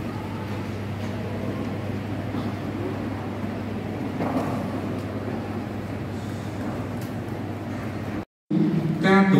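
A large congregation murmurs softly in a big echoing hall.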